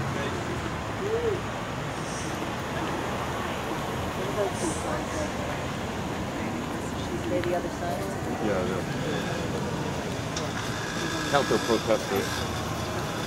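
A group of men and women call out and cheer from across the street.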